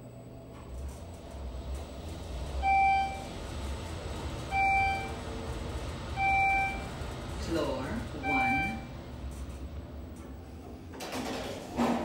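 An elevator motor hums low and steady as the car moves.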